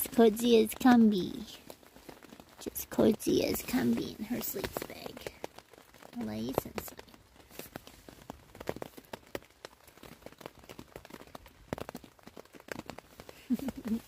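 A padded jacket rustles as it is handled.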